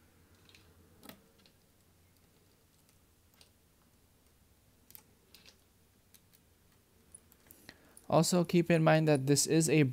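A small screwdriver clicks softly as it turns screws.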